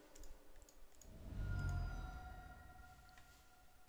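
A soft digital chime sounds as a card is played.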